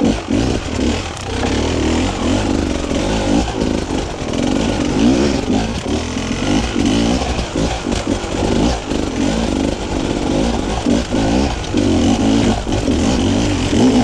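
A dirt bike engine revs and sputters up close, rising and falling in pitch.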